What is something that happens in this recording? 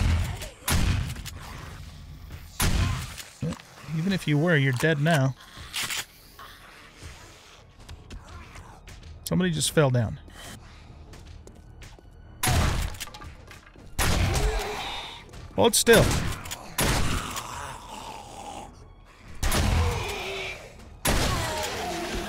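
Shotgun blasts boom one at a time.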